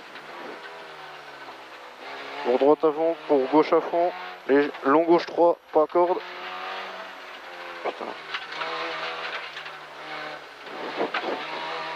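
A man reads out notes quickly through a helmet intercom.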